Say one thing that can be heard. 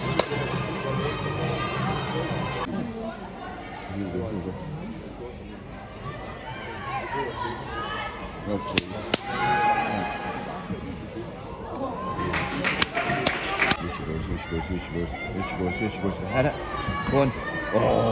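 Spectators talk and shout outdoors.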